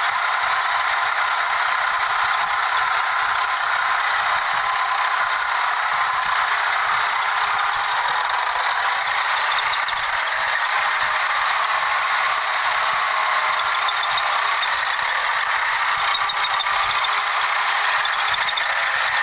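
A tractor engine runs loudly and steadily close by.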